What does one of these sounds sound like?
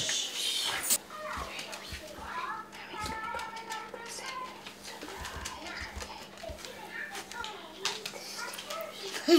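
A young girl giggles and chatters softly.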